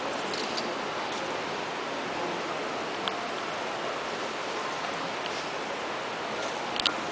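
A crowd of children and adults murmurs softly in a large echoing hall.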